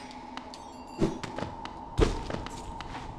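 A sword swishes and strikes in quick slashes.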